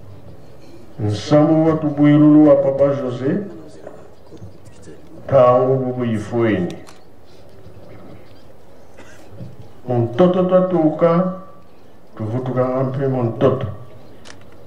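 An elderly man speaks slowly in drawn-out phrases through a microphone and loudspeakers.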